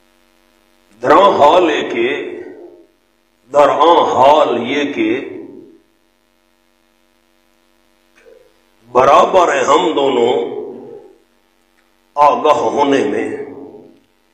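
A man recites in bursts through a microphone, with a reverberant echo.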